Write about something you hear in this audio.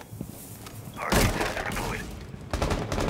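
A wooden barricade is smashed and splinters loudly.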